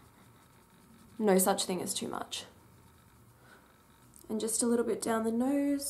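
A makeup brush brushes softly across skin.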